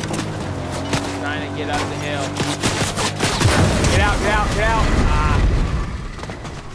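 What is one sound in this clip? A young man talks with animation into a microphone close by.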